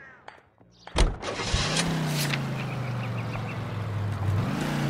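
A car engine starts and idles with a steady low hum.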